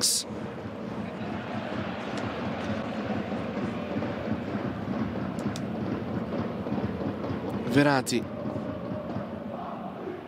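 A large crowd murmurs and chants steadily in an open stadium.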